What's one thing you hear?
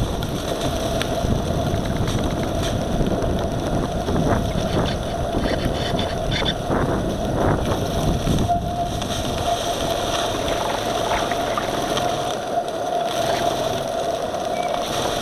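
Water splashes and laps against a boat's hull.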